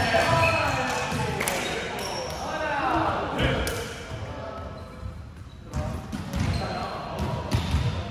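Young men shout and call out in a large echoing hall.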